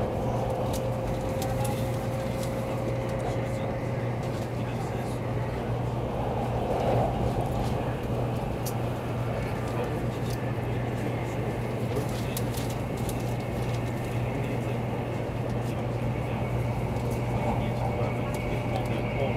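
A train rumbles steadily at speed, heard from inside a carriage.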